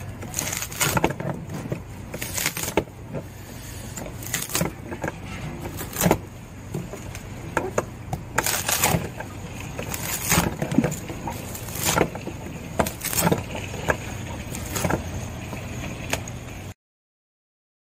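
Wood splits and cracks under a blade.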